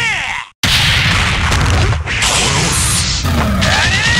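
A fireball whooshes through the air.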